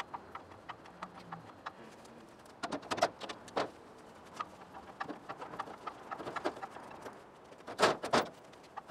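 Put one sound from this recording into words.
An engine hoist clicks and clanks as it is pumped.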